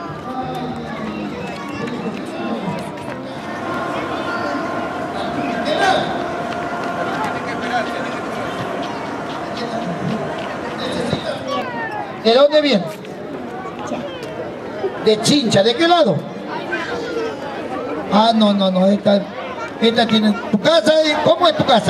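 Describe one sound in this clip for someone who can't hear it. Children chatter and shout in the background.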